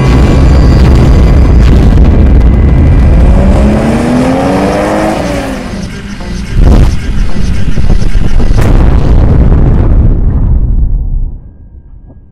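Jet engines roar.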